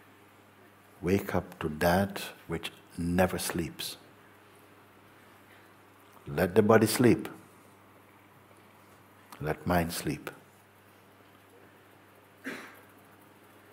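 An elderly man speaks calmly and slowly into a close microphone, with long pauses.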